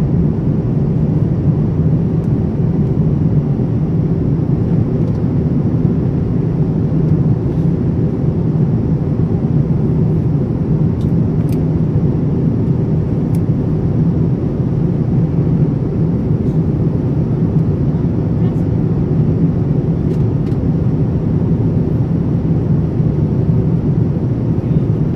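A jet airliner's engines drone with a steady, low roar inside the cabin.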